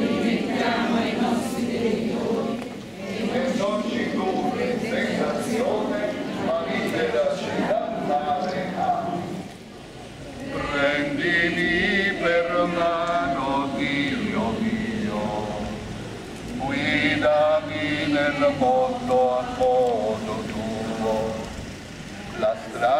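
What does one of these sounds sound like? A crowd of men and women sings a hymn together outdoors.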